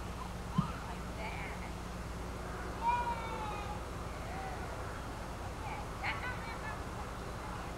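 A young child calls out nearby.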